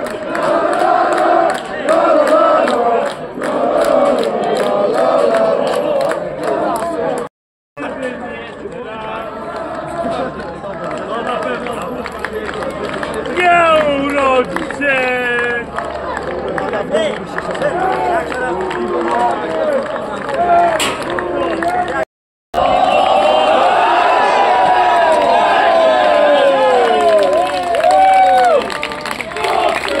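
A crowd of young spectators chants and cheers loudly nearby.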